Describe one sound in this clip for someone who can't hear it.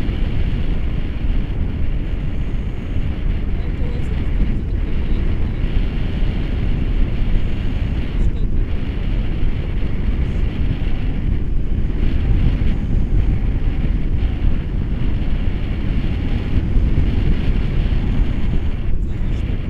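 Strong wind rushes and buffets loudly across the microphone, outdoors high in the air.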